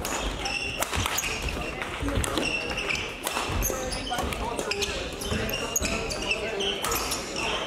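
Rackets smack shuttlecocks with sharp pops in a large echoing hall.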